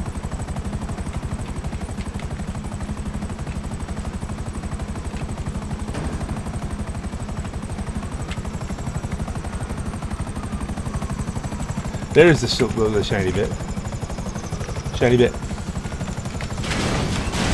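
Helicopter rotor blades thump steadily and close.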